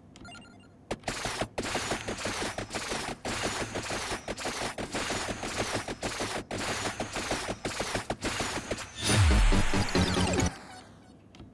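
Rapid electronic crackling and zapping sound effects play in fast bursts.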